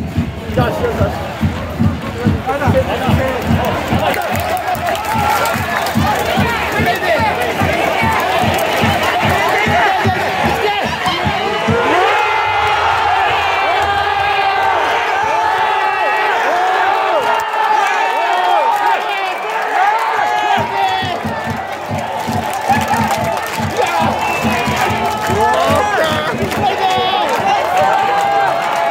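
A large stadium crowd chants and sings loudly in rhythm.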